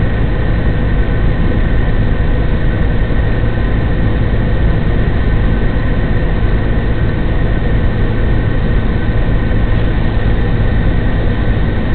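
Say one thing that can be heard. A large truck engine idles close by with a steady rumble.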